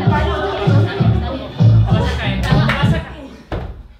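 A body thuds onto the floor.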